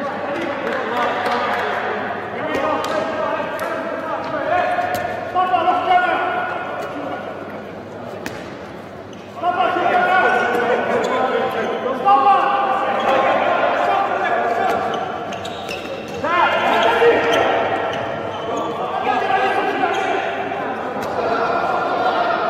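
A handball bounces on a hard court in a large echoing hall.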